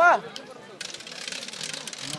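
A crowd of spectators chatters and calls out close by.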